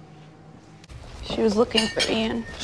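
A young woman speaks, close by.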